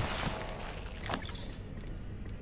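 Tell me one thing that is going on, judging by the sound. A metal crate clicks open with a short whoosh.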